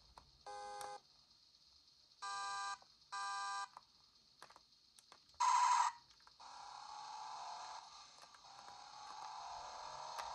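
Buttons on a handheld game console click under the thumbs.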